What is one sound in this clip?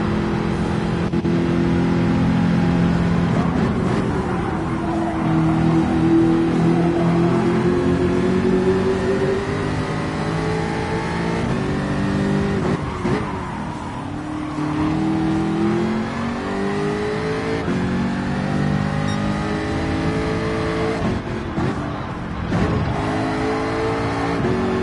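A race car engine roars, rising in pitch and dropping sharply with each gear change.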